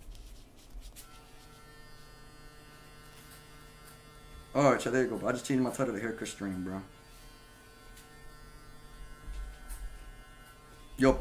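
Electric hair clippers buzz steadily.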